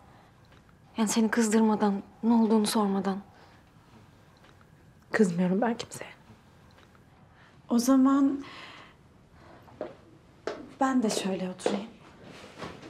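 Young women talk with each other in short, emotional exchanges.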